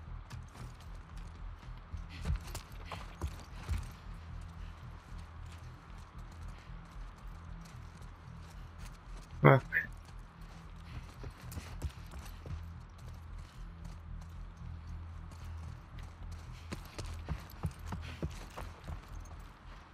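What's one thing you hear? Footsteps tread softly across a hard floor.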